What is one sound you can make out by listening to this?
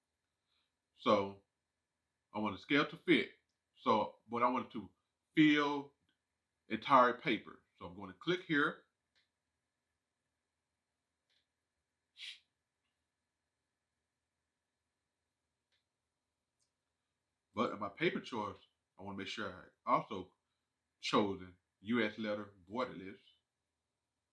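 A man talks calmly into a microphone, pausing between phrases.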